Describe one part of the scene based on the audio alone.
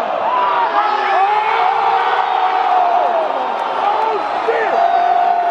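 A large crowd cheers and screams loudly in an echoing arena.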